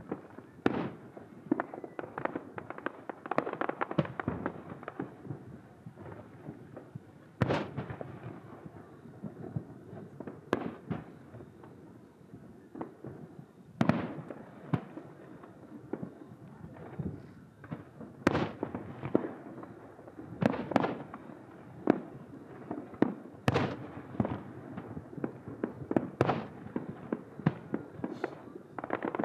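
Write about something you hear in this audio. Fireworks boom and crackle in the distance, with echoing bangs.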